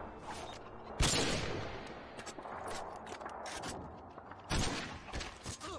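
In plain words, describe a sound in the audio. A sniper rifle fires loud, echoing shots.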